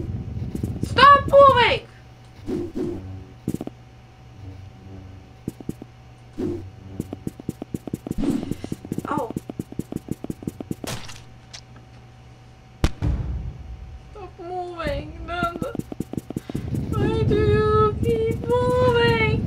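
A woman talks close to a microphone.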